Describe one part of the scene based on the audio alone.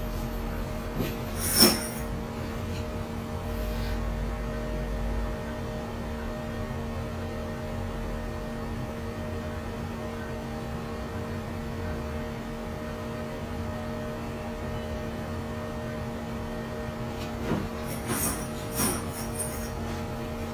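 A small metal tool scrapes and taps close by.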